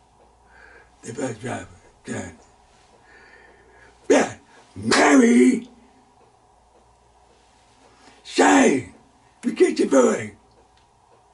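An elderly man speaks slowly and deliberately into a close microphone, with long pauses.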